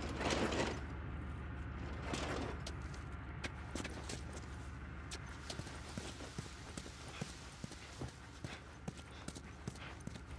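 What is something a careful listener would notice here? Footsteps crunch over a debris-strewn floor.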